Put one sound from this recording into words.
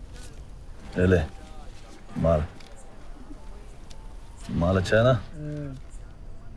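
A teenage boy answers quietly, close by.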